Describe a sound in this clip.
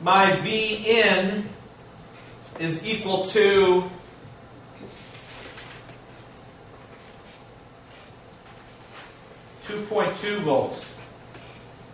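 A man speaks calmly to a room, heard through a microphone.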